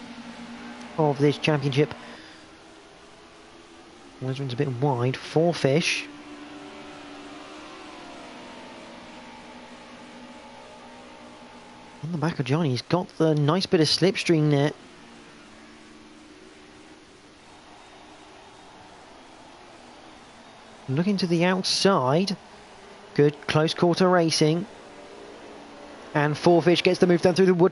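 Racing car engines roar as the cars speed along a track.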